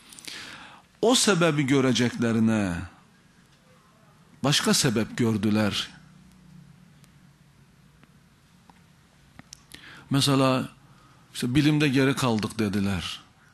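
A man speaks forcefully into a microphone, in bursts with pauses, slightly echoing.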